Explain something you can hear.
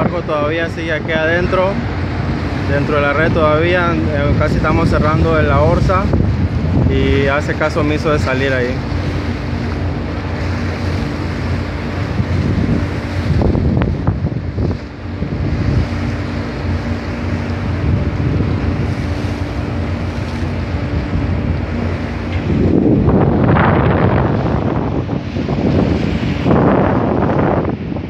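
Choppy sea water splashes and sloshes nearby.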